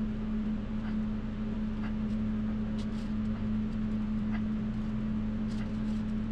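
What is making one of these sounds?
A metal sculpting tool scrapes across clay.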